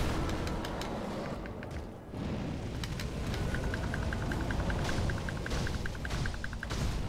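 A huge beast growls and snarls.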